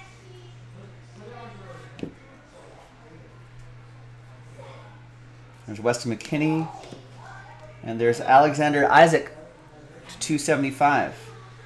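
Trading cards slide and rustle in a man's hands.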